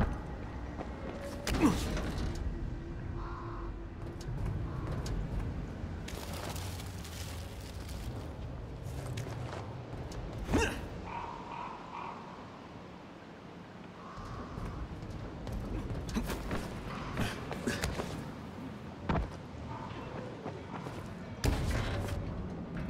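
Footsteps thud on a hollow metal floor.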